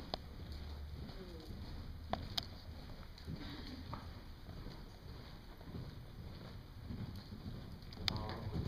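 A horse's hooves thud on soft ground in a large indoor hall.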